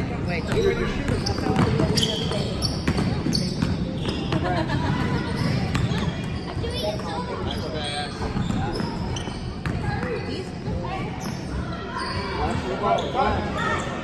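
Young girls shout and call out to one another in an echoing gym.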